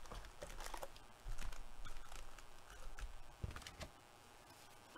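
A foil wrapper crinkles and rustles as hands handle it.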